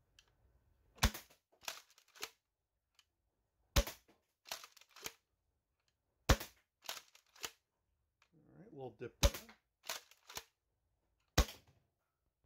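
A toy blaster fires with sharp snapping clicks.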